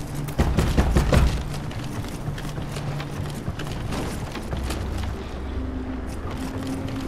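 Footsteps patter quickly on wooden planks and stone.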